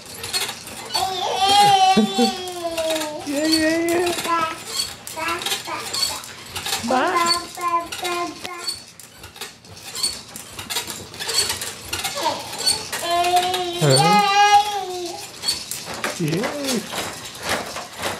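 A baby babbles and squeals nearby.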